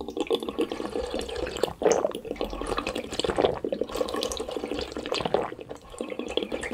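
A man slurps and sucks loudly on an ice pop close up.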